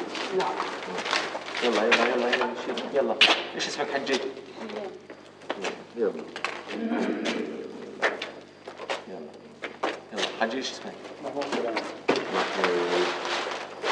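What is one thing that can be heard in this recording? Several men and women talk over one another nearby.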